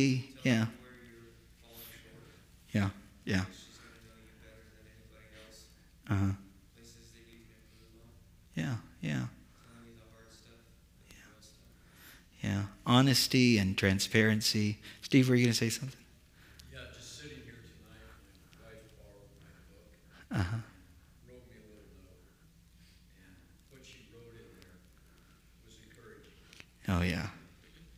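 A man speaks calmly to a gathering, heard through a microphone.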